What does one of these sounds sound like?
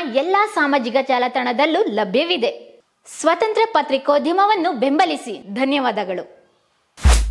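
A young woman talks with animation, close to a microphone.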